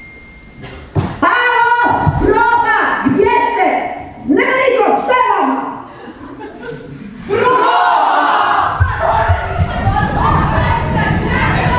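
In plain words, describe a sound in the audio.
Young women speak and shout with animation on a stage, heard from a distance in a large hall.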